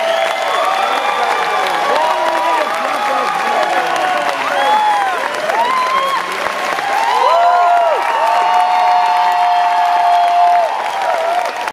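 Audience members clap their hands.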